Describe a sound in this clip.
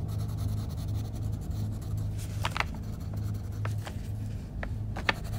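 A crayon scratches back and forth across paper.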